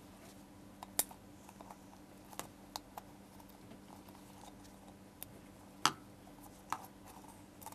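Paper taps and clicks sharply now and then.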